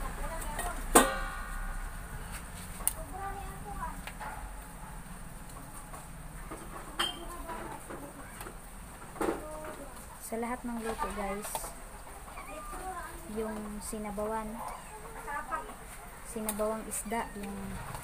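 A metal spoon clinks against a metal pot.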